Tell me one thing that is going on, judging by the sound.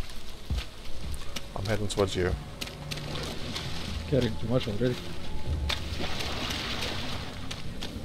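Footsteps tread steadily through undergrowth.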